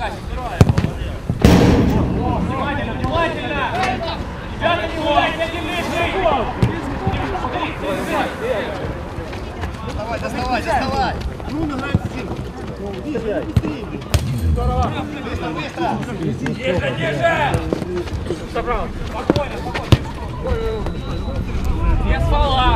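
Nearby spectators talk and cheer.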